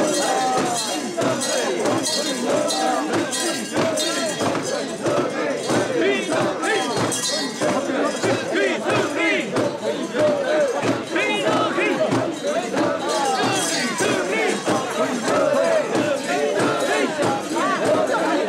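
A crowd of men chant and shout rhythmically together close by.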